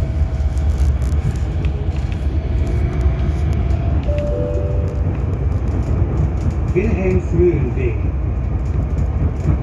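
A vehicle rumbles and rattles steadily as it rolls along.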